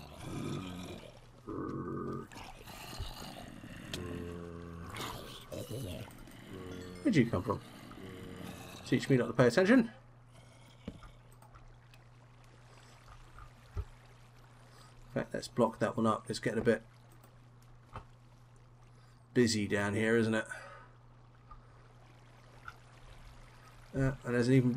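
Water trickles and splashes steadily.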